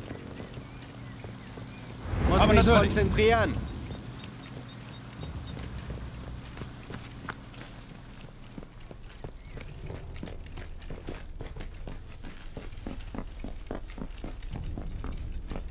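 Footsteps thud quickly on hard ground and wooden stairs.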